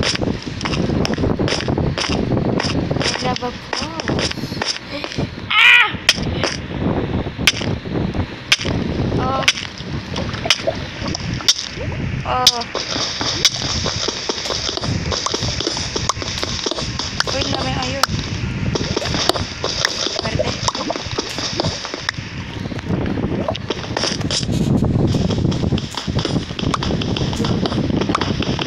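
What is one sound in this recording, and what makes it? A pickaxe chips repeatedly at stone and dirt.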